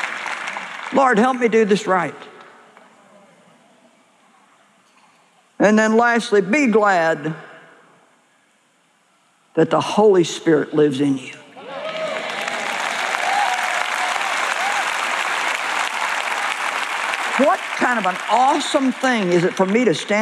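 A middle-aged woman speaks with emphasis through a microphone in a large hall.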